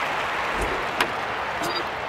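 A baseball bat cracks against a ball.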